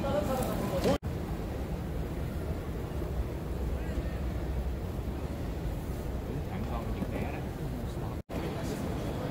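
An escalator hums steadily.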